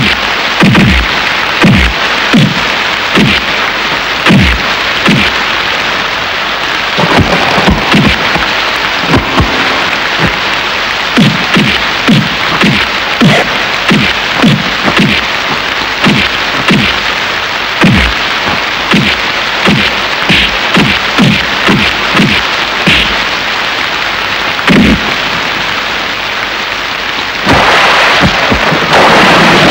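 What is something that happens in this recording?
Punches land with dull thuds in quick succession.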